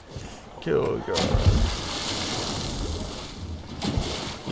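A body splashes heavily into water.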